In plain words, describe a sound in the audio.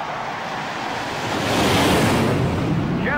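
Jet planes roar loudly overhead.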